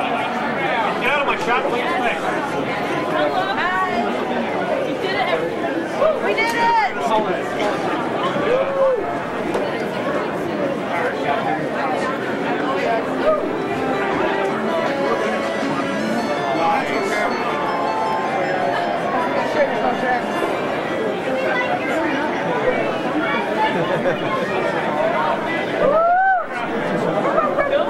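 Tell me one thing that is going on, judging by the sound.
A large crowd of men and women chatters loudly all around, in an echoing indoor hall.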